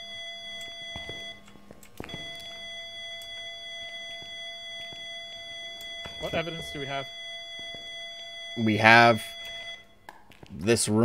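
A steady electronic tone hums from a handheld device.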